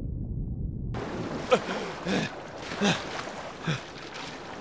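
Water splashes as someone swims.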